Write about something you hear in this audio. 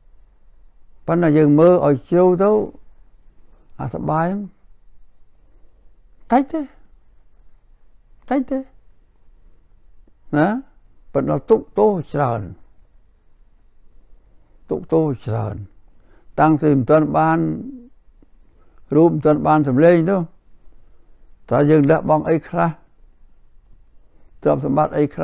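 An elderly man speaks slowly and calmly close to a microphone, with long pauses.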